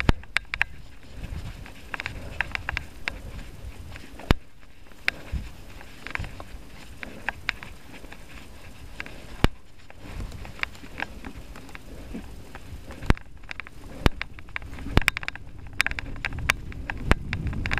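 Bicycle tyres crunch and rattle over a dry, leafy dirt trail.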